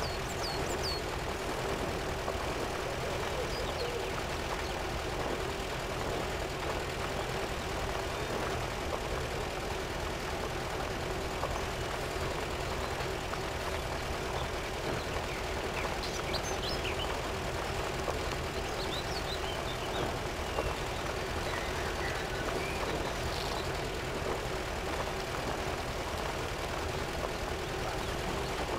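An engine drones steadily.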